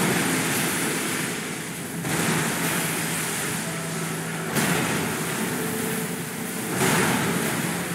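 Water splashes heavily as a huge creature thrashes and strikes.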